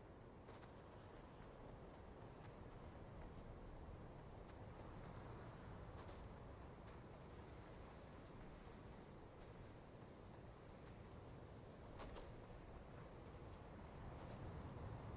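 Footsteps patter quickly across grass.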